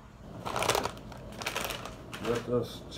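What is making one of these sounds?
A plastic bag rustles and crinkles.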